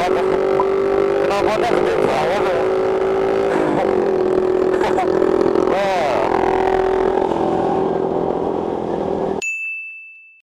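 A motorcycle engine drones steadily at speed, now and then revving up and down.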